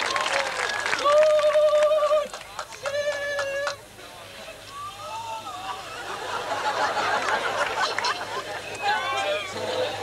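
A woman sings loudly, holding long notes.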